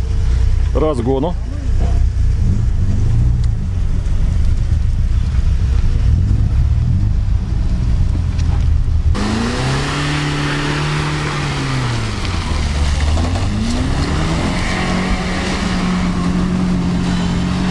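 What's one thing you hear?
A car engine revs hard, rising and falling.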